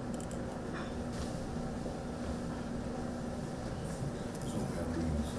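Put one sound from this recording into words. Pages of paper rustle and turn.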